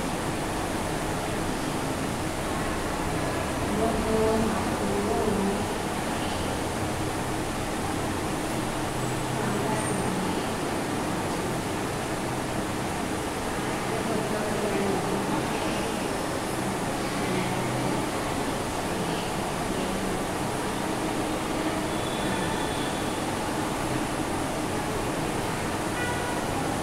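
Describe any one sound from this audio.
A woman speaks calmly and steadily, as if teaching.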